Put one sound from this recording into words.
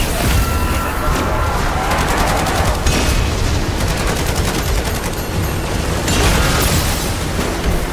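An energy beam hums and crackles.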